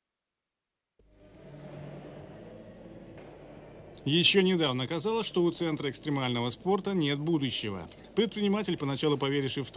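Wheels of bikes and scooters roll over wooden ramps in a large echoing hall.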